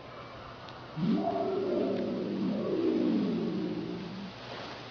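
A large animatronic dinosaur lets out a deep, drawn-out roar.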